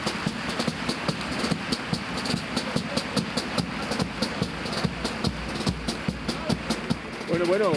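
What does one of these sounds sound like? A group of men sings together loudly.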